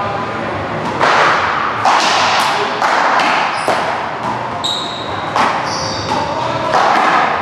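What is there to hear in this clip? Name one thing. A rubber ball smacks sharply off walls in an echoing hall.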